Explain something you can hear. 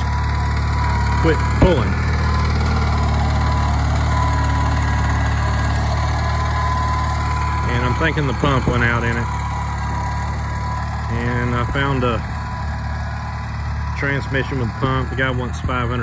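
A harrow scrapes through loose soil.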